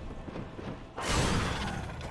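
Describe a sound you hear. A heavy swing whooshes and strikes.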